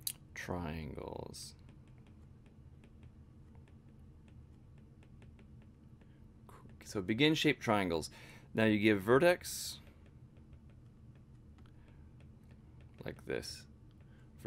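A stylus taps lightly on a tablet.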